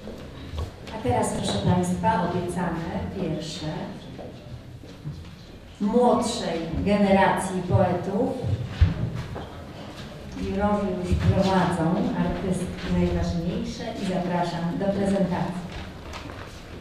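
A woman speaks into a microphone over loudspeakers in a room with some echo.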